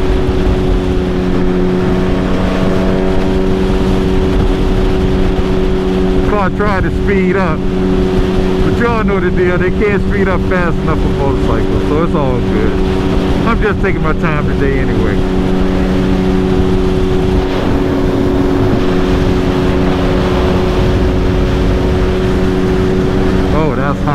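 Wind buffets and rumbles past a rider at speed.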